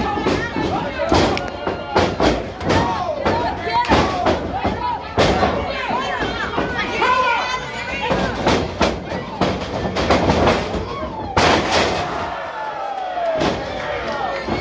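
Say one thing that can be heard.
A crowd shouts and cheers loudly in an echoing hall.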